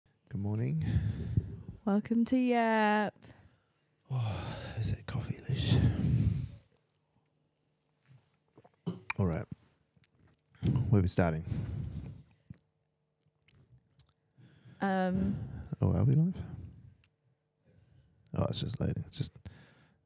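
A young woman talks and laughs into a close microphone.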